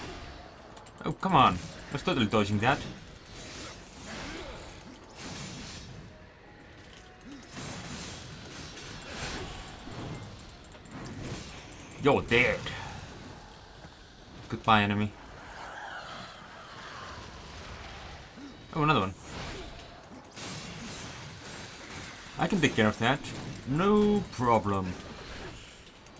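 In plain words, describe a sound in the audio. Blades slash and clash in a fight.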